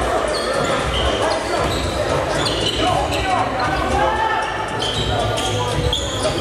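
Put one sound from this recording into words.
Sneakers squeak sharply on a wooden floor in an echoing gym.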